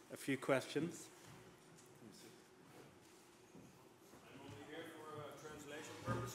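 A man speaks briefly in a large, echoing hall.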